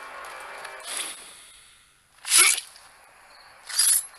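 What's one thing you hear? A blade swishes and strikes with a sharp hit.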